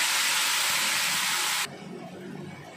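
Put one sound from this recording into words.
Food sizzles loudly in hot oil.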